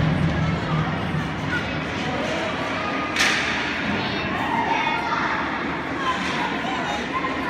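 Young children shout and call out across a large echoing rink.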